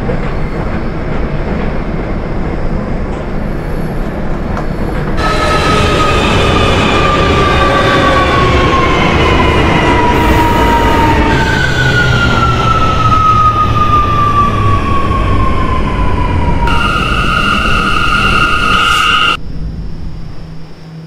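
A subway train rumbles along the track.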